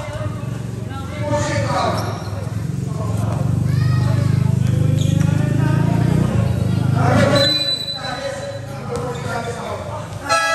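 Young men shout to each other during a game.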